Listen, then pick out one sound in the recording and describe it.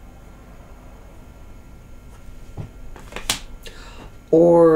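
Cards shuffle and rustle in a woman's hands.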